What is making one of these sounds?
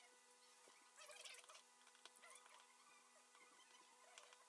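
A small screwdriver scrapes and ticks faintly against metal parts.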